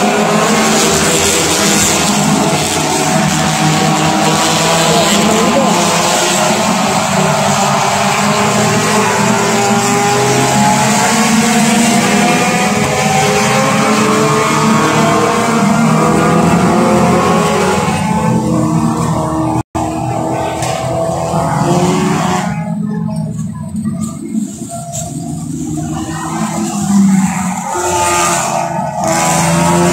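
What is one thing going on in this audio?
Racing car engines roar and whine as cars speed around a track.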